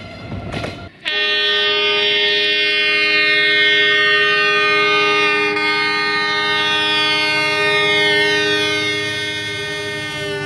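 A locomotive horn sounds a long, steady, loud chord.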